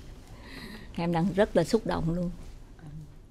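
A young woman speaks with animation into a microphone.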